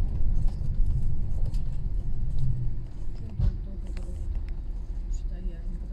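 A tram rumbles low and steady as it rolls along a street.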